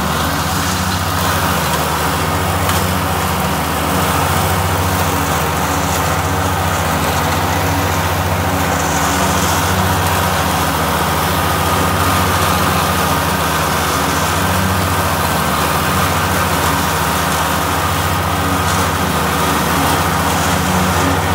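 A small tractor engine rumbles steadily close by.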